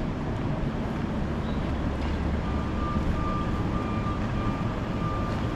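Steady low street noise rumbles outdoors.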